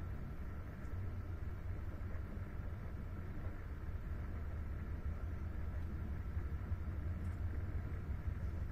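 A train rumbles steadily along the track, heard from inside a carriage.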